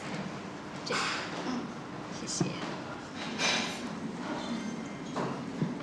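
A young woman speaks softly and politely, close by.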